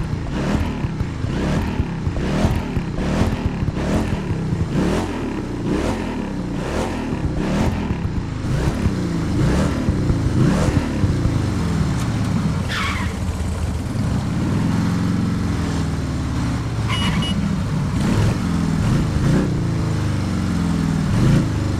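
A motorcycle engine revs up and down again and again, rising in pitch as it pulls away.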